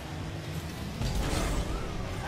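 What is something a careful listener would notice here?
A rocket boost roars loudly.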